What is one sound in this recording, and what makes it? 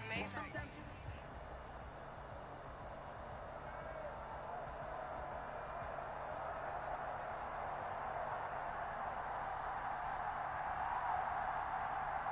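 A stadium crowd roars steadily and slowly swells.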